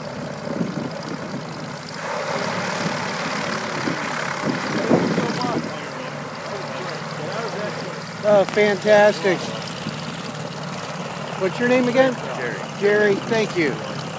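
An airship's engine hums steadily nearby.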